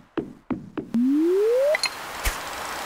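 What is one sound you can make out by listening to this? A fishing line whooshes as it is cast.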